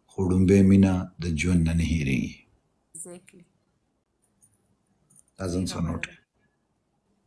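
A young man speaks with animation, close to a phone microphone.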